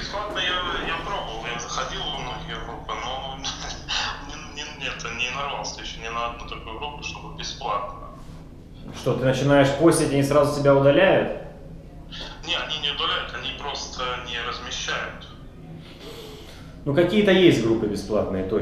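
A man talks calmly and steadily close by.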